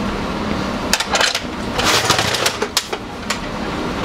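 Metal containers clatter as a man handles them.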